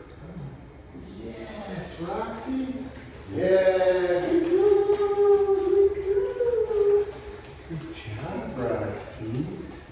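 A man talks to a dog in a bare, echoing room.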